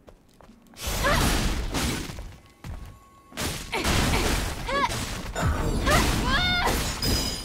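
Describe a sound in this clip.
A blade swooshes through the air in quick, heavy slashes.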